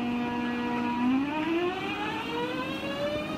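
An electric train's motors whine upward in pitch as the train pulls away.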